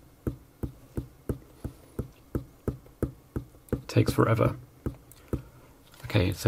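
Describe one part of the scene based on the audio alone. Fingers tap steadily on the keys of a small rubber keyboard, one press after another.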